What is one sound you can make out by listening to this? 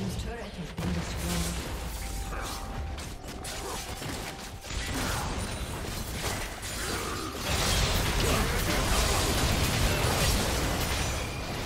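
Video game spell blasts and impacts crackle and boom in a busy fight.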